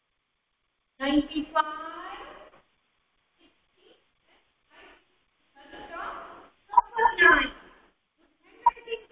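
A woman speaks clearly and slowly, as if teaching a class.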